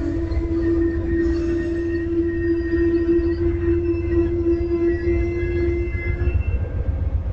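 Train brakes squeal with a steady high whine.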